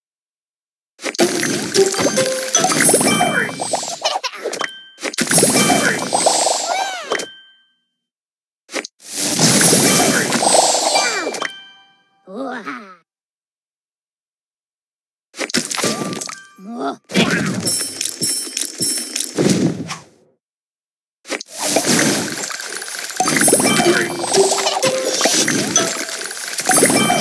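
Cartoonish popping and chiming game effects sound in bursts.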